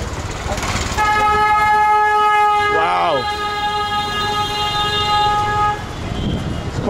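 A vehicle horn honks.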